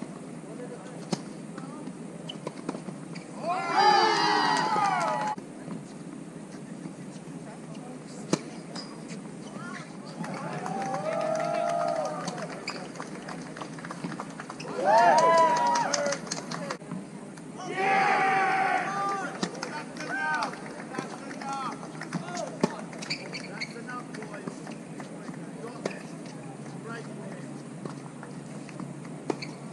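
A tennis ball is struck by rackets and bounces on the court.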